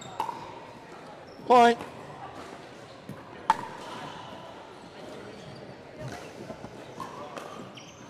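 Paddles strike a plastic ball with sharp hollow pops in a large echoing hall.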